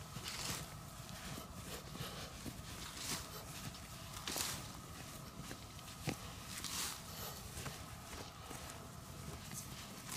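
Hands brush and scrape through dry dirt.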